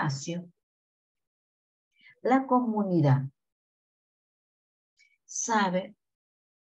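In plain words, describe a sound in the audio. A young woman speaks calmly in short phrases through a microphone, as on an online call.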